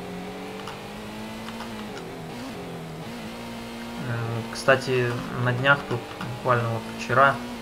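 A racing car engine hums steadily, dropping in pitch as it shifts gears.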